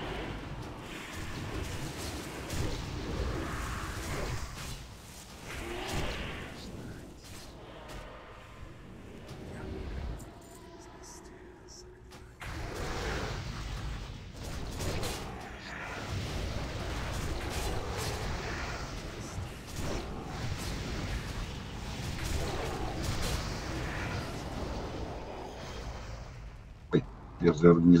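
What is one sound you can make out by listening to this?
Magic spells crackle and burst during a fantasy battle.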